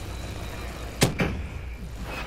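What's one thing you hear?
A gun fires a sharp shot.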